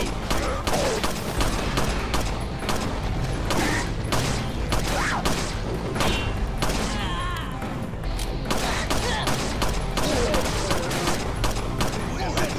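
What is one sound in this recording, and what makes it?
A pistol fires in rapid, repeated shots.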